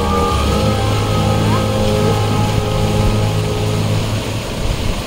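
Music plays loudly through loudspeakers.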